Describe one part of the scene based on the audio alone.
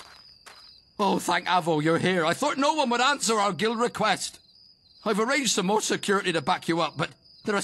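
An elderly man speaks anxiously, close by.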